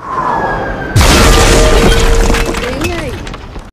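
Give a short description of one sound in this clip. Debris clatters and rains down after a blast.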